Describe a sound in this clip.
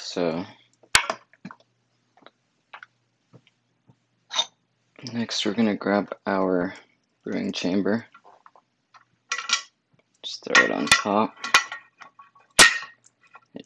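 Metal parts click and knock as they are handled.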